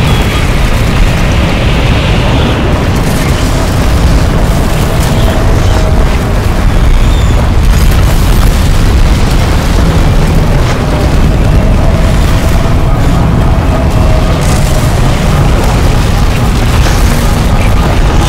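A roaring wind blows hard and steadily.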